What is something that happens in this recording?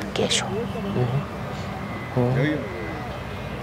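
A woman speaks calmly into a clip-on microphone, close by.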